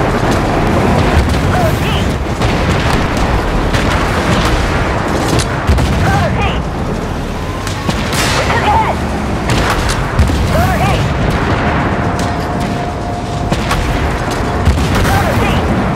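A tank cannon fires with sharp blasts.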